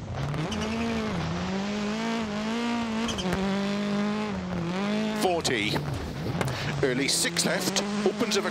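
A rally car engine revs hard, rising and falling with gear changes.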